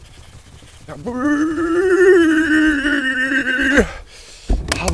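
A young man groans in a long, drawn-out voice close to a microphone.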